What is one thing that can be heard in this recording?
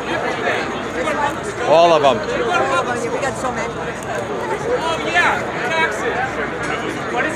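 A crowd of protesters talks and shouts outdoors.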